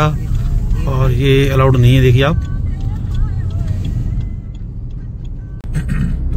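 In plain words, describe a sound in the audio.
A car engine hums and tyres rumble on the road, heard from inside the car.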